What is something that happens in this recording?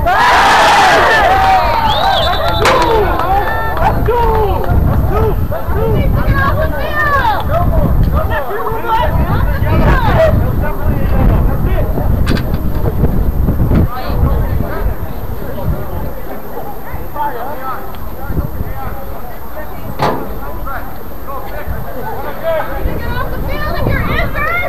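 Young men shout to each other at a distance across an open field.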